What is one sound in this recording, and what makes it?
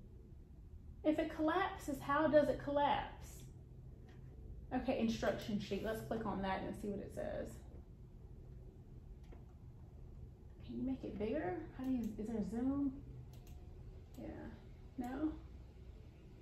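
A woman speaks calmly, close by, with pauses.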